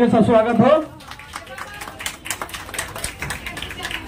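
A few people clap their hands.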